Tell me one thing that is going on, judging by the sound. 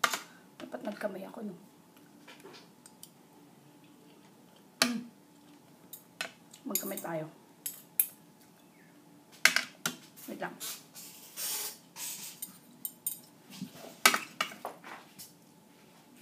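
Metal cutlery clinks against a plate.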